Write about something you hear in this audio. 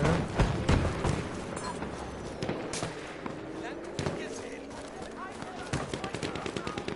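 Gunfire cracks in quick bursts.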